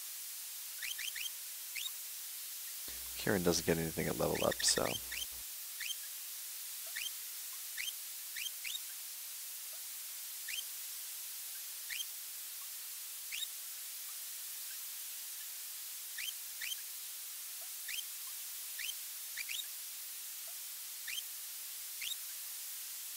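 Short electronic blips sound as a game menu cursor moves.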